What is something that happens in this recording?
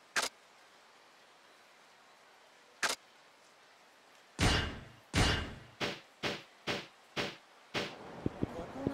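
Menu selections click.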